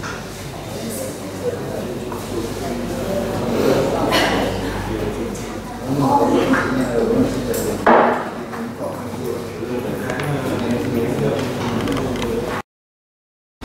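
Young people chat among themselves nearby.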